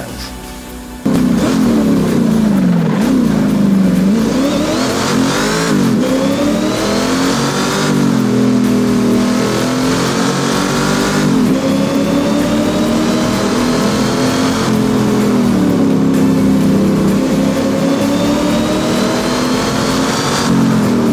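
A car engine revs up and down through the gears at speed.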